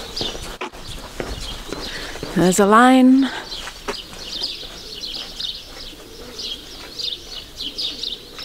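Footsteps walk slowly on a paved road outdoors.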